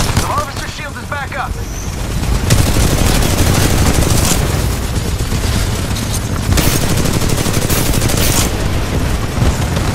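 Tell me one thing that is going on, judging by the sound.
A large robot's cannon booms and thuds.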